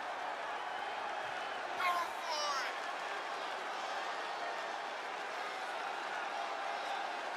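A large crowd cheers steadily in a big echoing arena.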